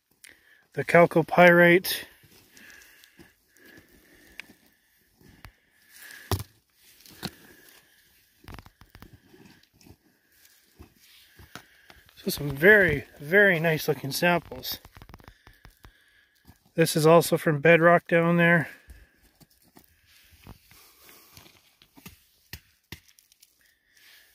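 Loose stones scrape and clink on gravel as rocks are picked up.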